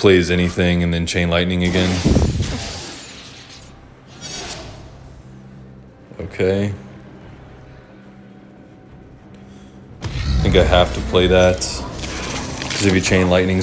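Magical game sound effects whoosh and chime.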